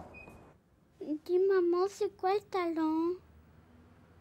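A young girl speaks in a high, sing-song voice nearby.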